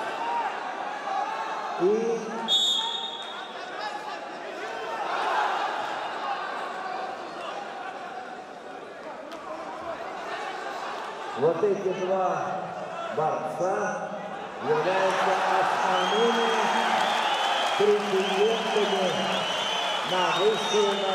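A large crowd murmurs and shouts in an echoing hall.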